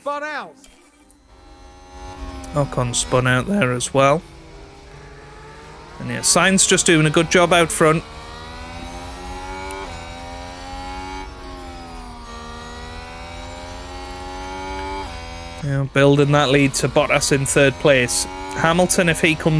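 A racing car engine whines at high revs, rising and falling in pitch.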